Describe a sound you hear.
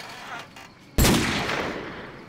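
A single gunshot rings out in an echoing space.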